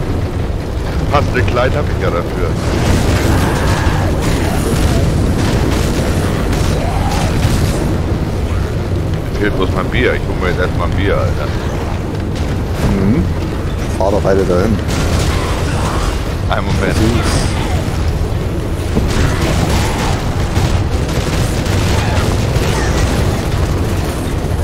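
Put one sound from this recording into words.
A motorcycle engine roars steadily.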